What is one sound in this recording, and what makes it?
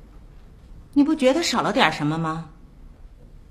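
A middle-aged woman speaks up close, sharply.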